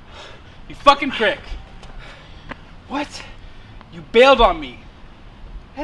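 A young man shouts angrily nearby.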